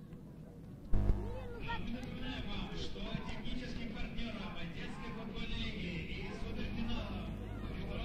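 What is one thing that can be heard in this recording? A distant crowd murmurs and chants in an open-air stadium.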